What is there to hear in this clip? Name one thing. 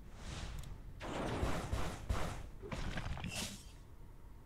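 Game combat sound effects clash and whoosh in quick bursts.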